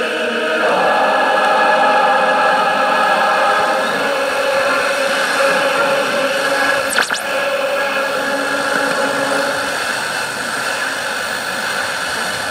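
A radio hisses and crackles with static through its loudspeaker.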